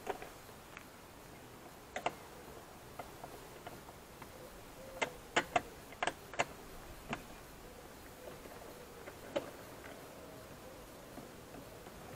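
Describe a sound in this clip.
A screwdriver scrapes and clicks against a car door.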